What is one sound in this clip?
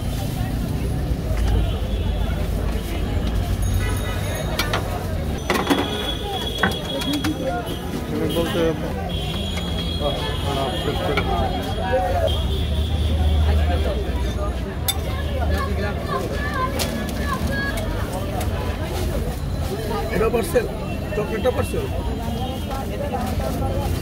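Food sizzles on a hot griddle.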